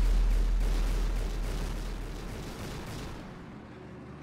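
Gunfire and explosions rattle in a game battle.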